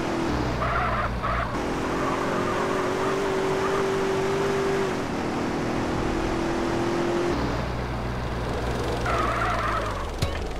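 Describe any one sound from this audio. A car engine hums steadily as a car drives along a road.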